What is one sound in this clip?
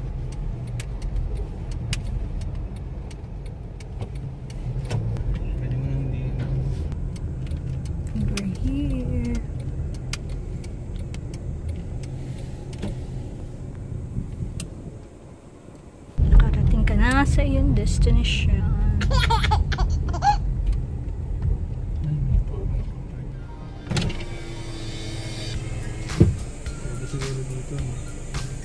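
A car engine rumbles steadily, heard from inside the car.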